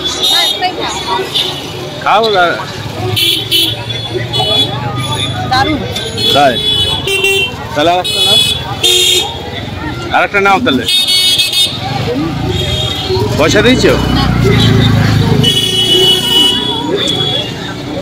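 Vehicle horns honk in street traffic.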